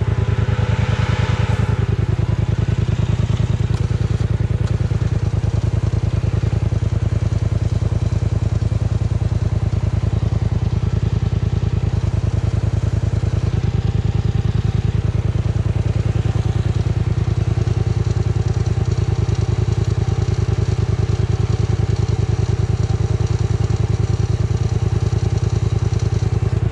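An engine idles with a steady, fast, throbbing rumble close by.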